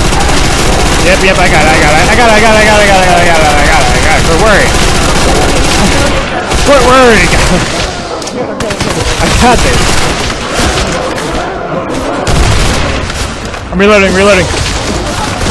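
A monster growls and snarls close by.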